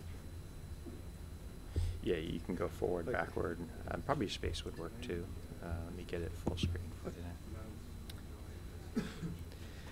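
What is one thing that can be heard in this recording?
A second man talks quietly with the first man.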